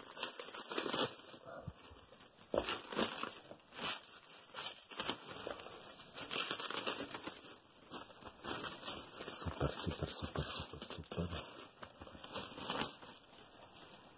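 Plastic wrapping crinkles and rustles as hands handle it.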